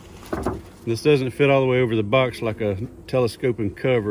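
A wooden lid is set down onto a box with a soft knock.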